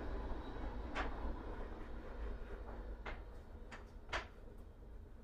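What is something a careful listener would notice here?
Light knocks sound as objects are set down on a table.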